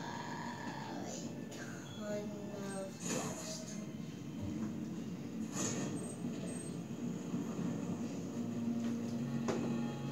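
Heavy footsteps thud and clank on metal from a game through a television speaker.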